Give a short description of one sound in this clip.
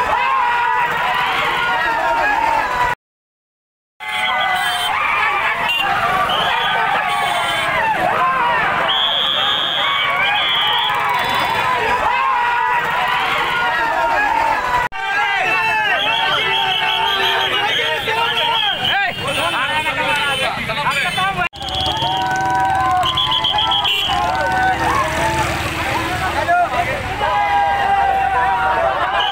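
A crowd of men cheers and shouts loudly outdoors.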